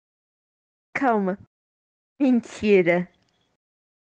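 A young girl laughs.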